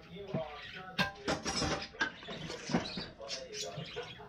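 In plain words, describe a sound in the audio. A fork scrapes and clinks against a pot.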